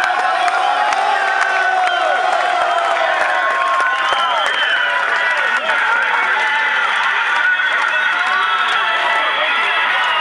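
A large crowd of men talks and shouts outdoors.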